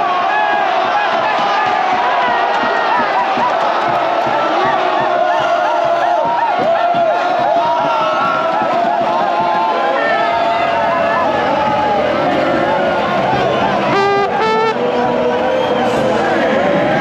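A large stadium crowd sings and cheers loudly.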